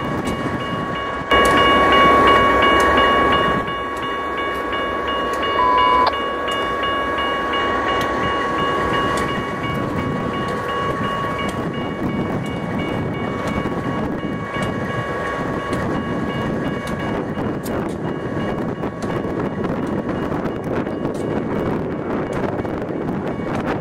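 A diesel locomotive engine rumbles as it passes close by.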